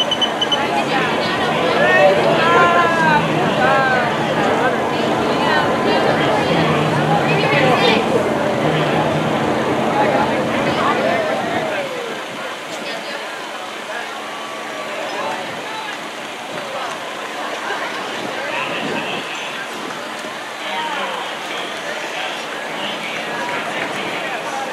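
A crowd of men and women chatters and calls out nearby outdoors.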